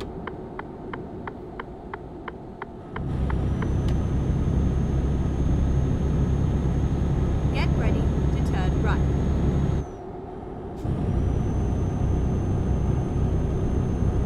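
A truck engine rumbles steadily, growing louder as it speeds up.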